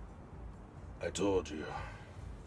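A man speaks quietly close by.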